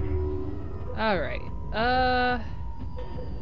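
Electronic menu tones chime as selections are made.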